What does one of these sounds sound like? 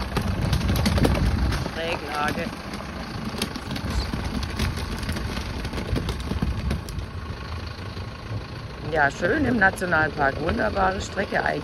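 Tyres crunch over loose gravel.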